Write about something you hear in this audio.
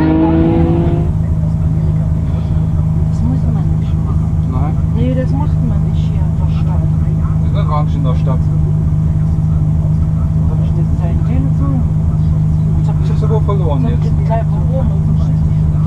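A car engine hums steadily inside the car.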